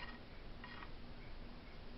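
A fingertip softly rubs along a wooden surface.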